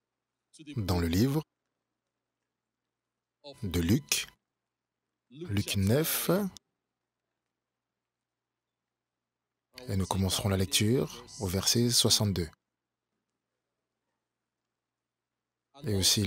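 A man speaks into a microphone, preaching with pauses and echoing in a large hall.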